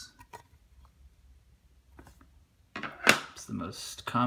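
Hard plastic cases click and tap as hands handle them.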